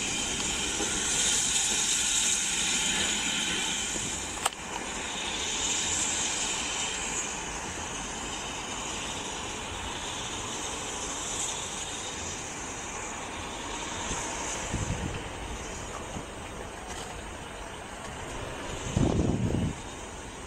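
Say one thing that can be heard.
A steam locomotive hisses and rumbles as it rolls slowly closer.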